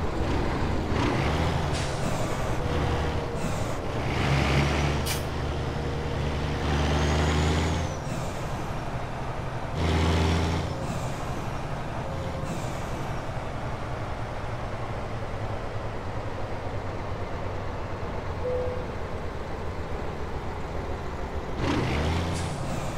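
A truck's diesel engine rumbles steadily as it drives slowly.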